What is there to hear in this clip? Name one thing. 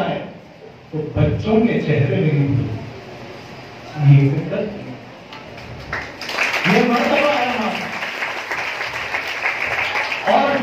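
A man speaks with animation into a microphone, heard over a loudspeaker in an echoing room.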